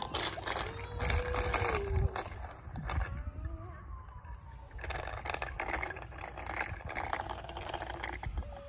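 Small bicycle tyres roll and crunch over rough pavement.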